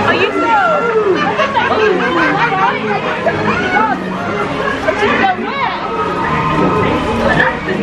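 Lively music with singing plays over loudspeakers.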